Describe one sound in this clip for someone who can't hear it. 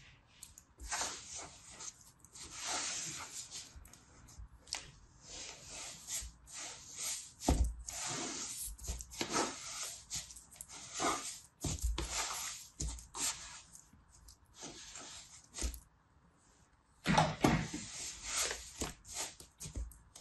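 Kinetic sand crunches and rustles up close.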